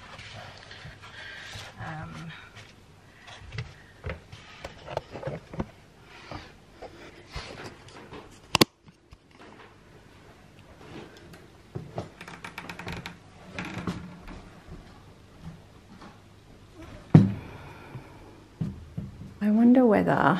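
Foam rustles and thumps as a hand handles it.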